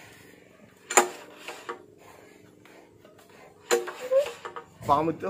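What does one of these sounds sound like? A recoil starter cord is yanked on a small engine.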